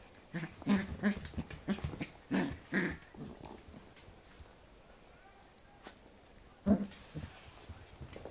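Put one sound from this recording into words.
A puppy growls playfully close by.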